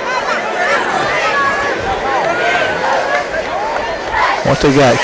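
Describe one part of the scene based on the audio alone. A crowd cheers and shouts from a distance outdoors.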